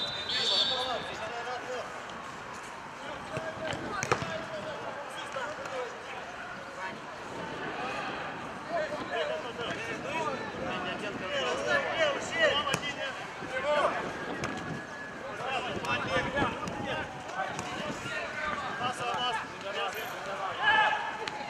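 Young men shout and call out to each other across an open pitch.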